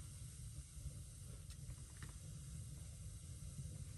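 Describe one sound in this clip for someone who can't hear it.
A cable plug clicks into a socket.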